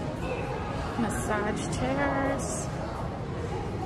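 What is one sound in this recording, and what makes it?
A man talks in a large echoing hall.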